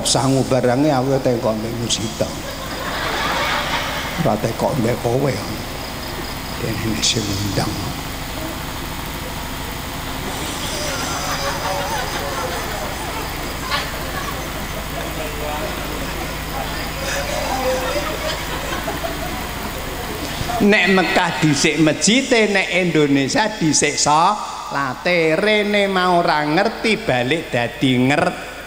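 An elderly man speaks with animation into a microphone over loudspeakers.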